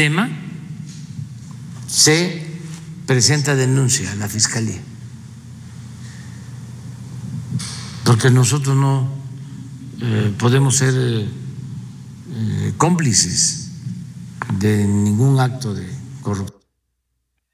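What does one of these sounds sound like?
An elderly man speaks slowly and calmly through a microphone.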